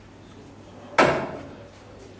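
A cue sharply strikes a billiard ball.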